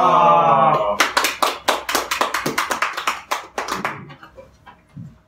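Several men clap their hands.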